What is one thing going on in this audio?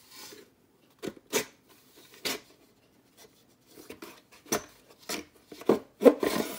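Hard plastic knocks and clicks as it is handled.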